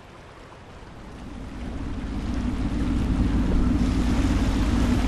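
Water splashes against a boat's hull.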